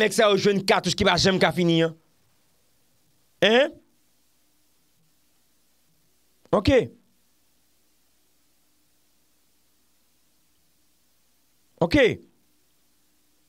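A young man speaks calmly and closely into a microphone, with long pauses between short phrases.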